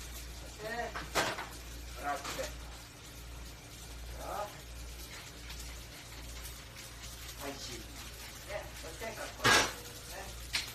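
Metal utensils clink and clatter.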